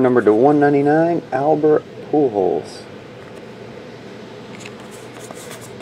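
Trading cards slide and shuffle between fingers.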